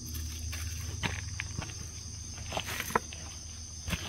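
A boot stamps on a spiky chestnut husk.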